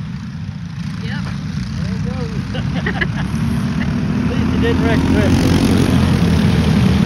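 Kart engines whine, rising and falling in pitch as they pass.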